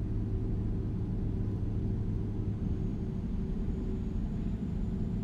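A truck engine rumbles low and steady as it drives along a highway.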